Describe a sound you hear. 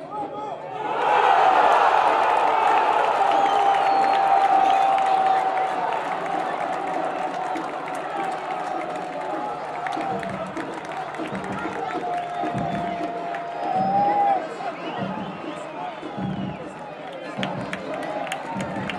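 A large crowd erupts into a loud roar and cheers.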